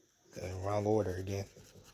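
A crayon scratches softly on paper.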